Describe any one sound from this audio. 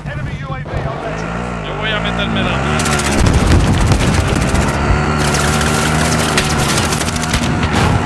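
A vehicle engine hums and revs while driving over rough ground.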